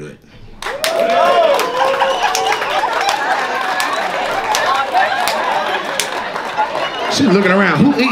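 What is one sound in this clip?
An audience laughs and cheers loudly.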